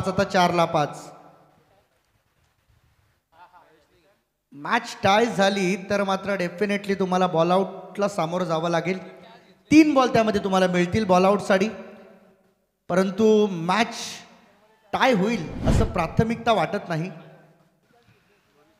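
A man commentates excitedly through a microphone.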